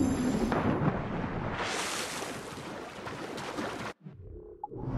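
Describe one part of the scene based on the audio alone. Water sloshes as a swimmer strokes through it.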